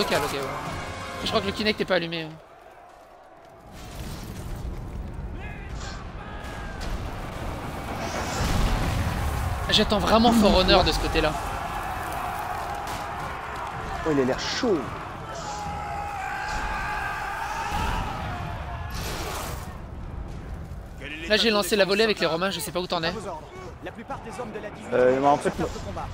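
Swords clash in a noisy battle.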